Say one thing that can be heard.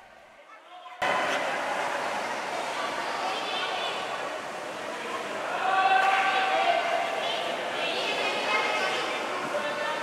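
Children chatter and call out in a large echoing hall.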